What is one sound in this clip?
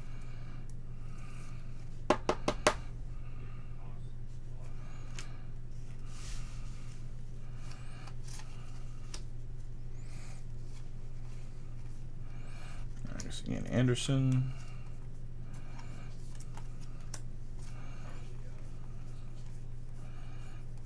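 Trading cards rustle and flick as they are shuffled in hands.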